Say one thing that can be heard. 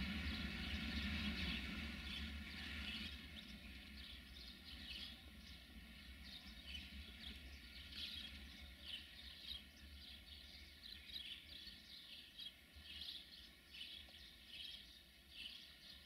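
Train wheels squeal and screech on the rails in repeated bursts.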